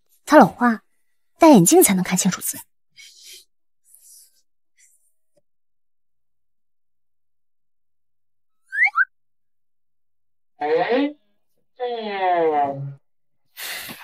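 A young woman speaks with surprise, close by.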